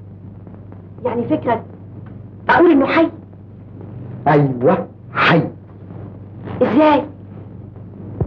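A young woman speaks excitedly.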